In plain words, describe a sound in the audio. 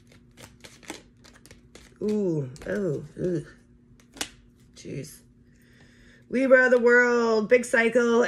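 Cards rustle and tap as they are shuffled.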